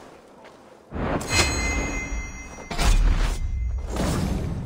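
A heavy thud lands as a body hits the ground.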